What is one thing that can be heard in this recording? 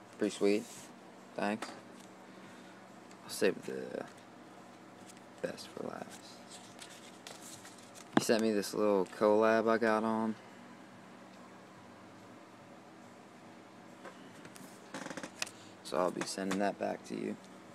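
Paper stickers rustle as a hand shuffles them.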